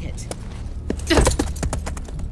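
A horse's hooves clop on hard ground.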